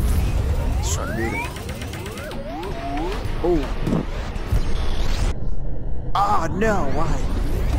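Laser blasts zap and whine with sliding electronic tones.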